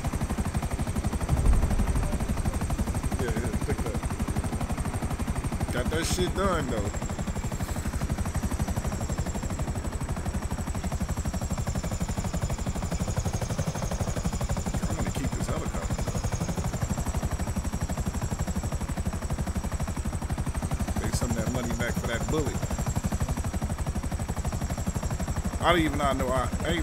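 A helicopter's rotor thumps steadily and loudly.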